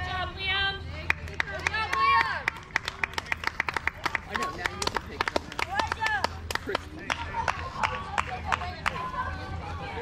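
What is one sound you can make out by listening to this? Hands clap rapidly in a burst of applause.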